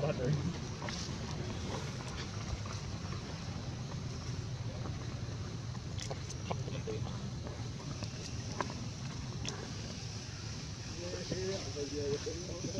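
A monkey chews and crunches on leaves close by.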